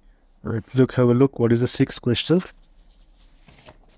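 Paper rustles as a page is turned.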